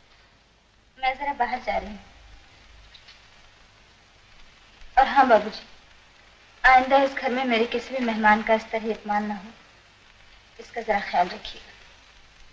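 A young woman speaks tensely close by.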